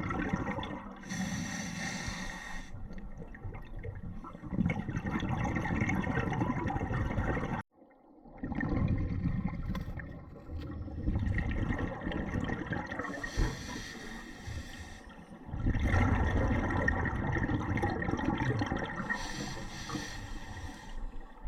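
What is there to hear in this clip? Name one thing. Air bubbles burst and gurgle from a diver's breathing gear underwater.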